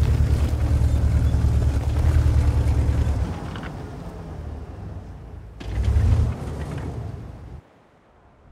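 A tank engine rumbles deeply as the tank drives.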